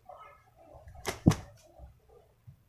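A rooster flaps its wings briefly.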